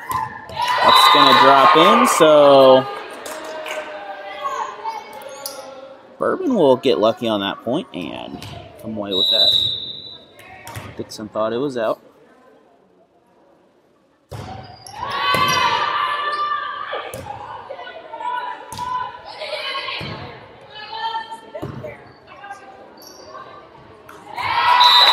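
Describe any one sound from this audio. Young women shout and call out loudly in an echoing gym.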